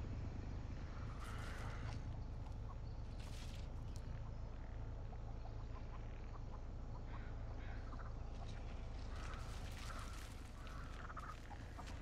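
Tall grass and leaves rustle as someone pushes through them.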